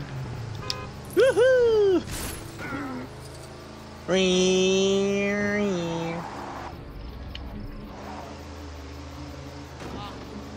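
A small quad bike engine hums and revs as the bike drives.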